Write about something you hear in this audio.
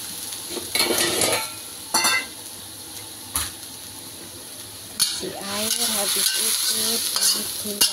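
Minced meat sizzles gently in a hot pan.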